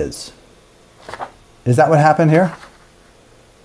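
A sheet of paper rustles as hands slide it away.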